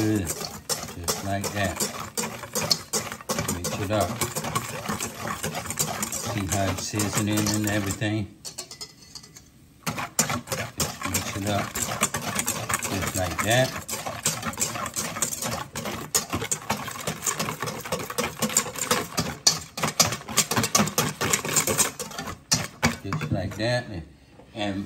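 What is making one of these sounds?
A wire whisk clatters quickly and rapidly against a metal bowl.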